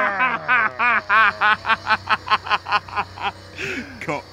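A young man laughs loudly nearby in quick bursts.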